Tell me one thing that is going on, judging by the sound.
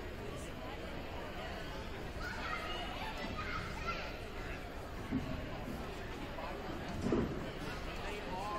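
A crowd of people chatters in a large echoing gym.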